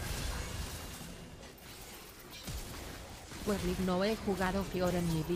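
Video game spells whoosh and crackle in battle.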